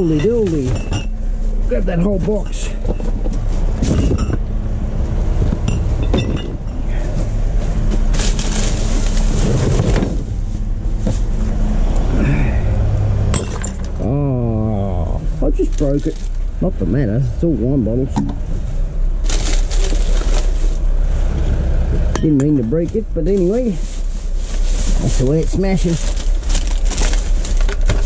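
Plastic bags rustle and crinkle as hands rummage through rubbish.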